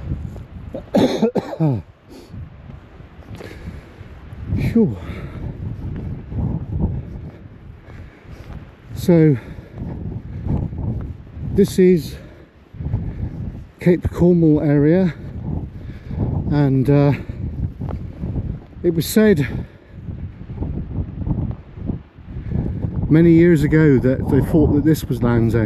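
Wind blows strongly across an open clifftop.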